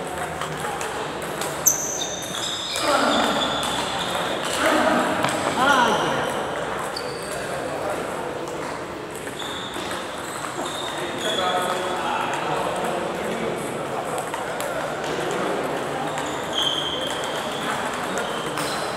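Table tennis balls click against paddles and tables.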